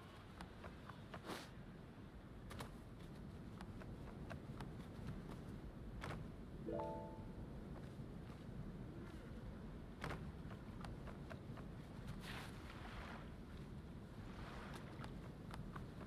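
Footsteps thud quickly on wooden planks and rock.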